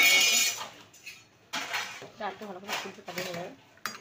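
A spoon clinks against a metal pot while stirring.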